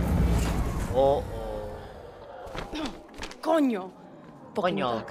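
A young woman speaks in a low, tense voice nearby.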